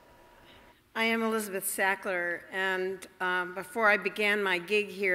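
A middle-aged woman speaks calmly into a microphone in an echoing hall.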